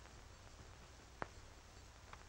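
A hat is set down on a table with a soft thud.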